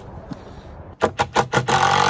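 A cordless drill whirs in short, loud bursts.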